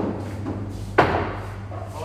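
A cue strikes a pool ball with a sharp click.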